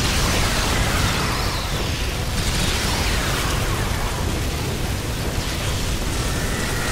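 A rapid-fire gun blasts continuously with heavy booming bursts.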